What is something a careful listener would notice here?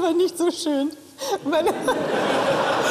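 A woman laughs brightly nearby.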